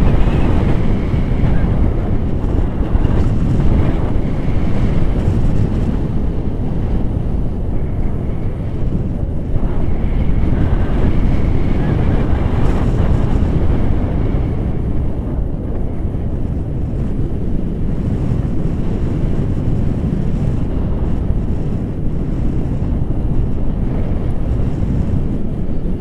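Strong wind roars and buffets against a microphone throughout.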